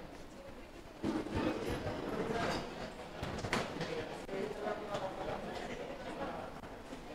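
Men talk quietly nearby in a room.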